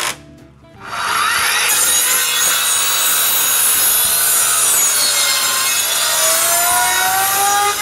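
A circular saw whines as it cuts through boards.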